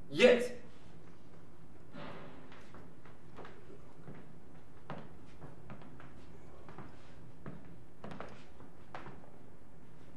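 Footsteps shuffle and tap on a wooden floor.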